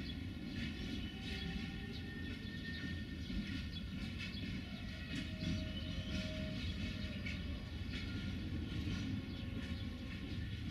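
Steel wheels squeal and screech faintly against the rails.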